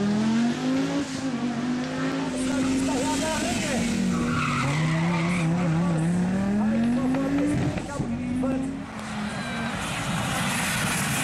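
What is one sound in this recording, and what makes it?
A turbocharged five-cylinder Audi Sport Quattro rally car accelerates hard through a bend, its engine rising and falling in pitch.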